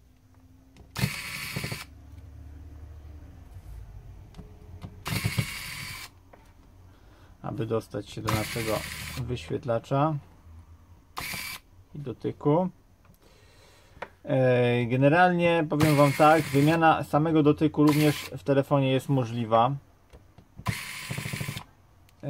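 A hot air tool hisses in short bursts.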